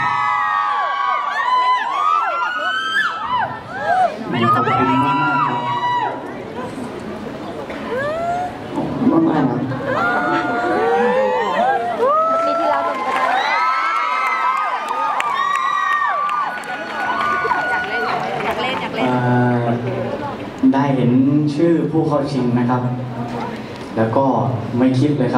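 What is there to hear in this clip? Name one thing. A crowd of young women screams and cheers.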